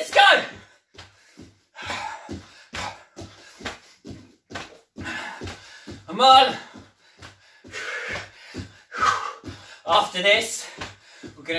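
Bare feet thud rhythmically on a wooden floor.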